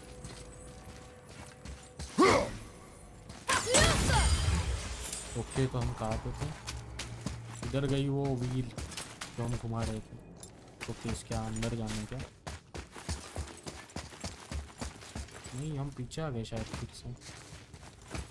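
Heavy footsteps crunch over stony ground.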